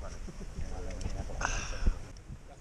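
A young man laughs and speaks close by.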